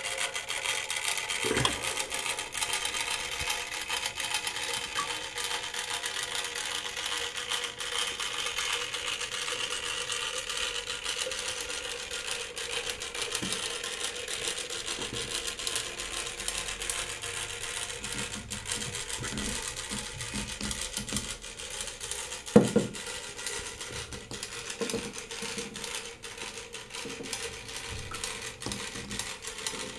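Water laps softly against a small floating toy boat.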